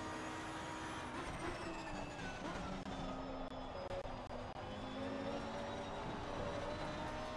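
A racing car engine drops in pitch as the car brakes hard, then climbs again.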